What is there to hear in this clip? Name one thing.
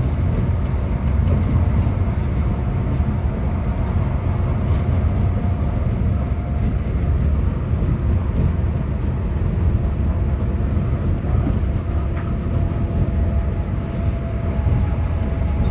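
A bus engine rumbles low and steady from inside the cabin.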